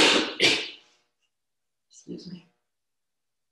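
A woman speaks briefly and calmly into a close microphone.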